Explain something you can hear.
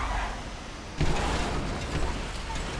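A truck crashes into a metal pole with a loud bang.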